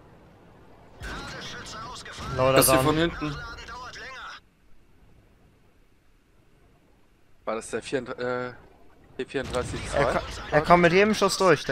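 A tank cannon fires with a loud boom.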